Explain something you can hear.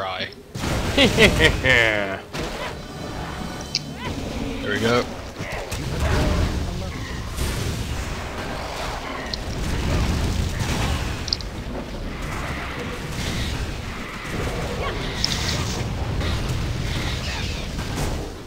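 Magic spells crackle and whoosh as a fight rages.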